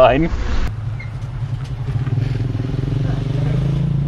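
A motorcycle engine hums as it rides closer.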